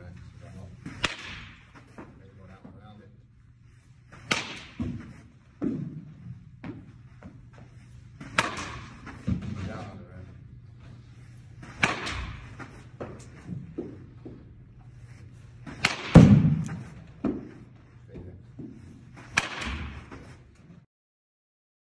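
A bat cracks sharply against a ball, again and again.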